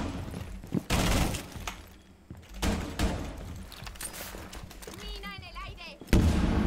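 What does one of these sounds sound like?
Gunfire rings out in short, loud bursts.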